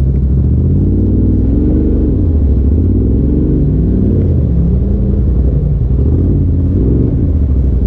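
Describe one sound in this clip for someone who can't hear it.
Tyres crunch over rocks and gravel.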